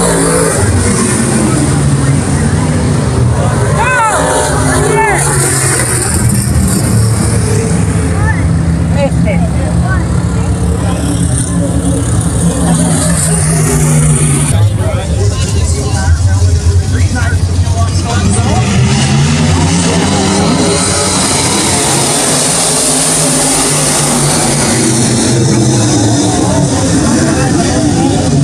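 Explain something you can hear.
Race car engines roar loudly outdoors.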